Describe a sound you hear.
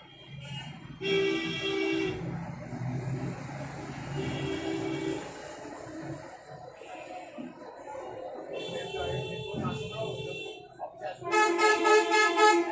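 A woman sings softly close by.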